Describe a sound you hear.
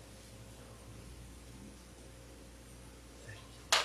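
A man shuffles softly across a carpeted floor.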